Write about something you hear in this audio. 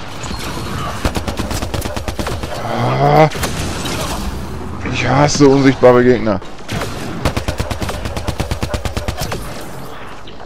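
Gunfire rings out in rapid bursts.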